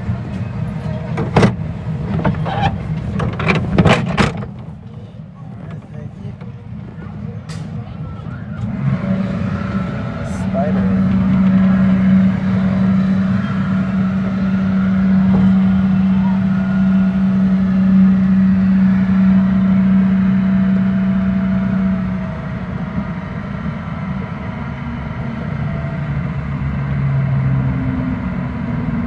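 An amusement ride's machinery hums and rumbles steadily as it turns and lifts.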